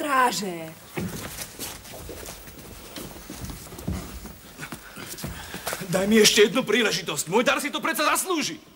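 Feet shuffle and clothes rustle in a scuffle.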